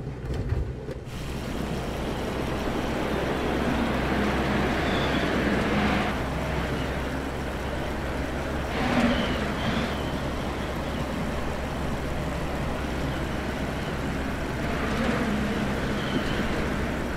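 Wind rushes loudly past a small plane.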